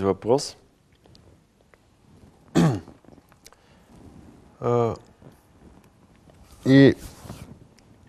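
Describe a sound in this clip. A man speaks in short, separate bursts close to a microphone.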